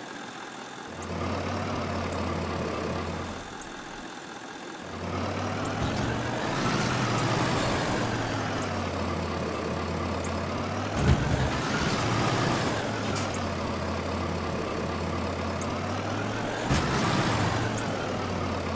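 A vehicle engine hums and revs as it drives over rough ground.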